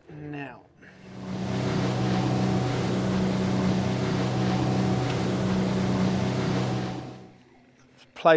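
An outboard motor drives a boat at speed across water.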